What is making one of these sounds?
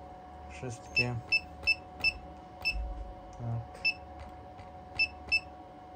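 A touchscreen beeps sharply with each tap of a finger.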